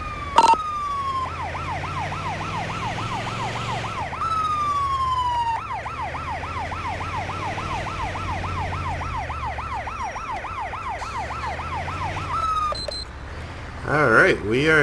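An ambulance engine rumbles low.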